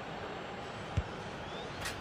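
A football is struck with a sharp thud.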